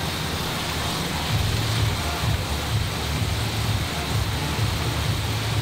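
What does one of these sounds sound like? Air bike fans whir and whoosh steadily, pulsing with each push.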